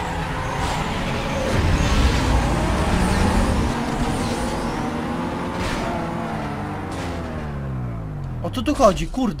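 Several racing car engines roar and rev hard.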